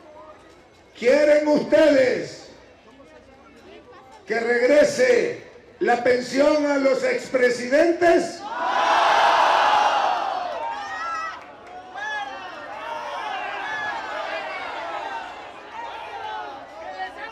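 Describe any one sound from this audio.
An older man speaks loudly into a microphone over a loudspeaker, outdoors.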